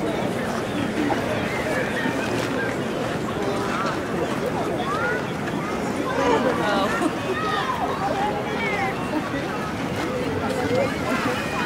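A crowd of people chatter in the distance outdoors.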